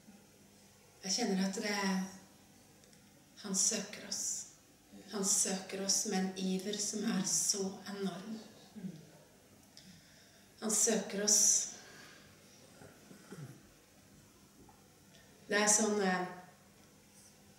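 A woman speaks calmly into a microphone in an echoing room, with pauses.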